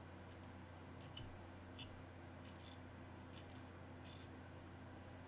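Small plastic model parts click and tap together.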